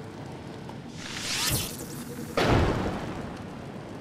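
A magical door opens with a rushing whoosh.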